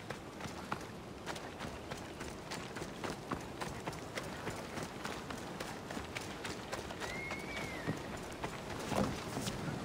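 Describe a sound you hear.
Footsteps crunch quickly over gravel and wooden planks.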